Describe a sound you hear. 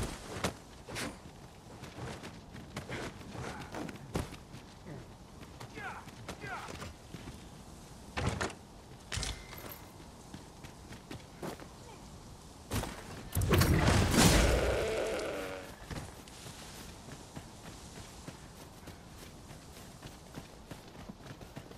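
Footsteps crunch on rocky ground and grass.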